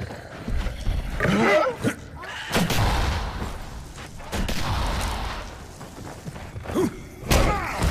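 A zombie snarls and growls nearby.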